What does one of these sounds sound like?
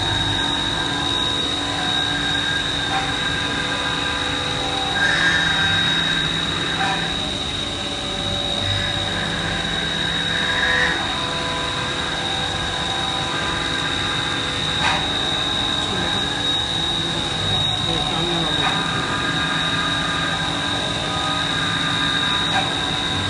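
A machine tool runs with a steady high whine.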